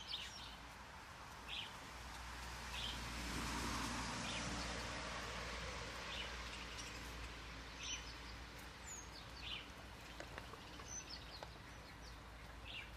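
Dry straw rustles and crackles as a rabbit pulls at it and chews.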